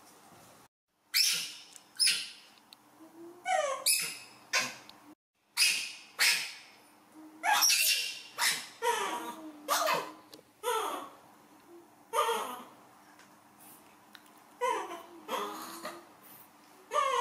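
A young monkey squeals and shrieks loudly in sharp bursts.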